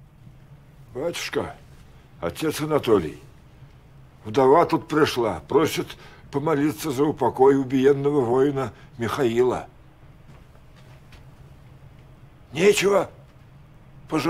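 An elderly man speaks in a low, gruff voice, close by.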